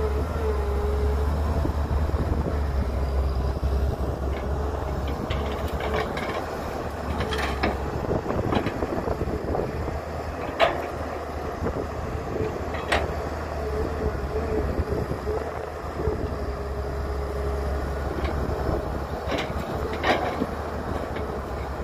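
A diesel excavator engine rumbles steadily and whines as it works.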